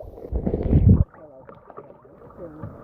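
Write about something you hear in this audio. Water splashes around a paddle.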